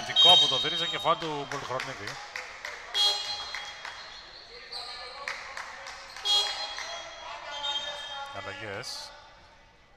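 Men shout loudly to each other across the court.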